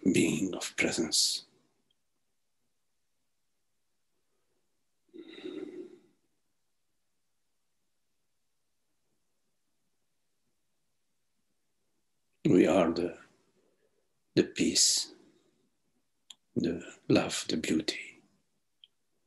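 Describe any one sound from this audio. An older man speaks calmly, with long pauses, over an online call.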